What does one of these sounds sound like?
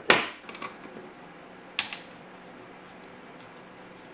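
A screwdriver turns a screw.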